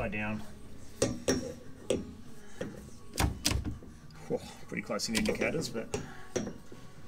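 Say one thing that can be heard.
A plastic gauge knocks and clicks as it is pushed into its mount.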